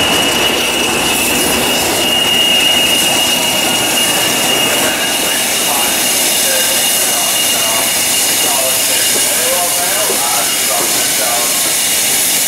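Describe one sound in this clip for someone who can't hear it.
A steam locomotive hisses steam.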